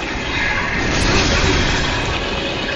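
A huge creature slams down with a heavy, rumbling crash.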